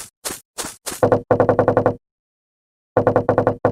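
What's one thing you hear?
Short retro game text blips chirp as a line of dialogue prints out.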